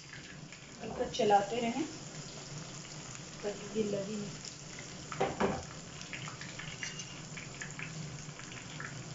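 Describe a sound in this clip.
Fish sizzles and crackles as it fries in hot oil.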